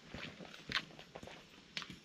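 A man's footsteps scuff on pavement close by.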